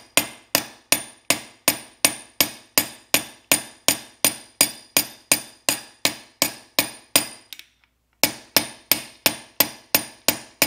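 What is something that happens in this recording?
A hammer strikes a metal stamp in a quick steady rhythm, each blow ringing sharply on an anvil.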